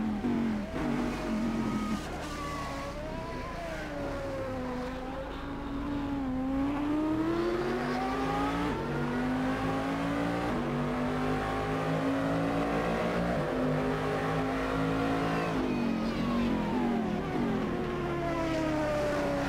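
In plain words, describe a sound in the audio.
A racing car engine drops in pitch, slowing and shifting down for corners.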